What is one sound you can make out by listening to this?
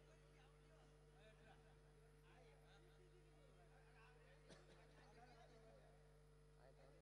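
A crowd of men and women murmurs and chatters quietly.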